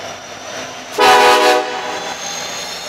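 A locomotive horn blasts briefly.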